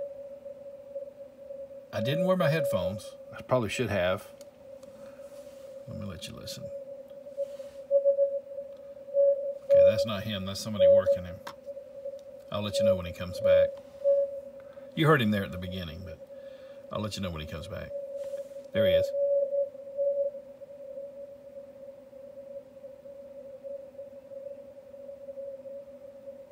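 A ham radio transceiver plays a faint Morse code tone.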